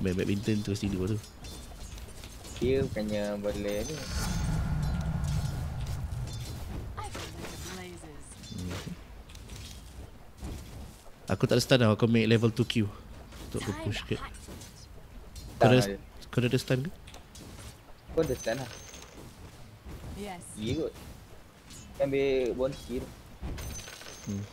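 Weapons clash and spells burst during a fight between game figures.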